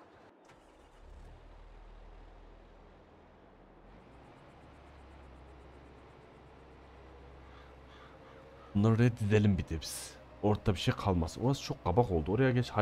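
A tractor engine hums low and steady.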